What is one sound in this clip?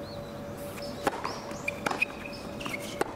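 A tennis ball bounces on a hard court before a serve.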